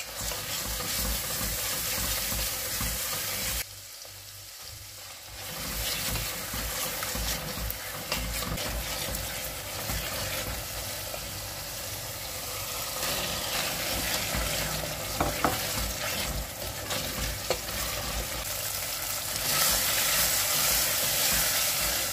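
A spoon scrapes and stirs food in a metal pot.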